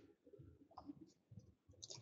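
A stack of cards is set down with a soft tap on a cloth surface.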